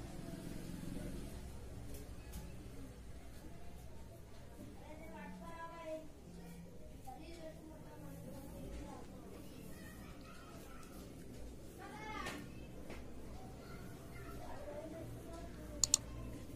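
A comb drags through long wet hair.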